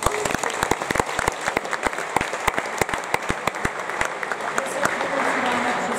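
Basketballs bounce on a wooden floor in an echoing hall.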